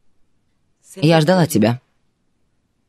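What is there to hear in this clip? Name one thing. A young woman speaks softly and briefly, close by.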